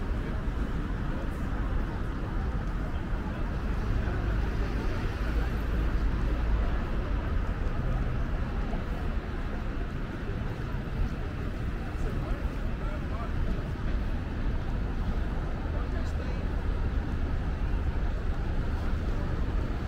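Traffic rumbles steadily through a city street outdoors.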